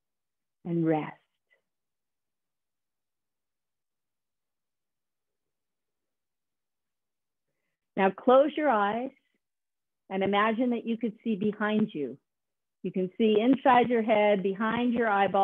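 A woman speaks clearly over an online call, giving instructions in short bursts.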